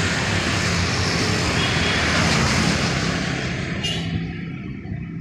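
A small truck drives past on the road.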